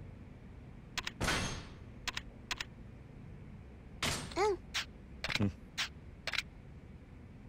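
Short electronic menu clicks and chimes sound several times.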